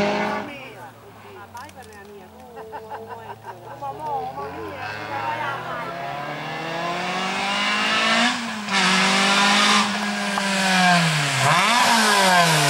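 A second rally car engine approaches from a distance, growing louder as it climbs.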